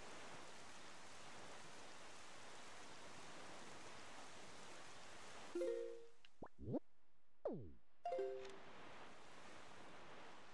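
Wind rushes steadily as a boat sails over the sea.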